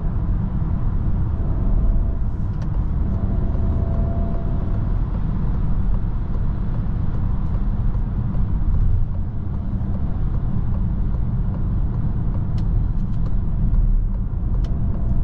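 Tyres roll on the road with a steady low roar.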